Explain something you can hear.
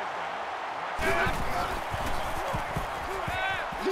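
Football players thud together in a tackle.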